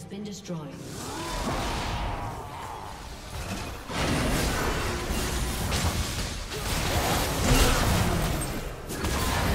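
Video game spell blasts and impacts crackle and whoosh in quick bursts.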